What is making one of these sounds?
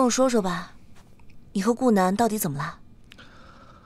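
A young woman speaks gently and close by.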